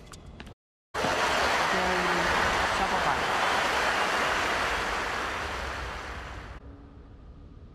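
A crowd applauds and cheers loudly, then fades.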